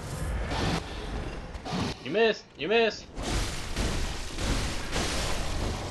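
Blades slash and clash in a fight.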